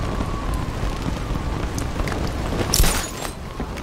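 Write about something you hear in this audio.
Wind rushes past.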